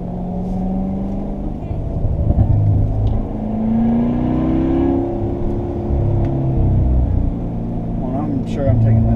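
A car engine roars loudly, revving up and down.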